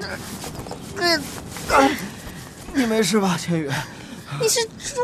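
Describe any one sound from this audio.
A young man asks a question with concern, close by.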